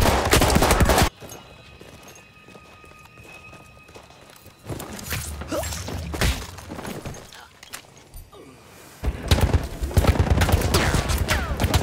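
Rapid gunfire crackles loudly.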